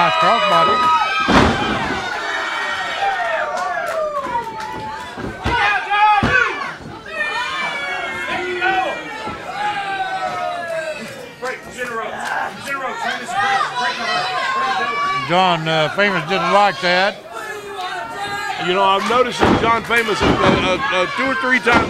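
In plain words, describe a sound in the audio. A crowd shouts and cheers loudly in an echoing hall.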